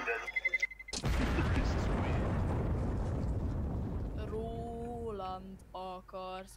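A loud explosion booms and slowly rumbles away.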